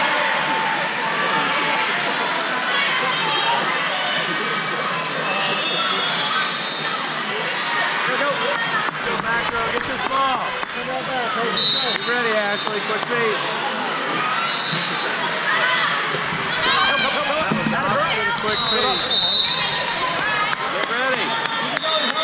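A volleyball thumps off hands and arms.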